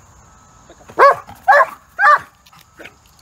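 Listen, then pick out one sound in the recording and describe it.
A dog barks loudly three times.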